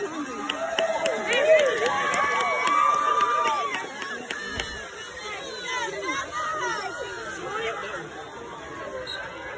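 A crowd of young women cheers and shouts outdoors.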